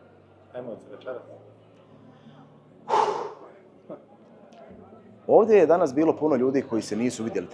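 A young man speaks calmly and close by, with pauses.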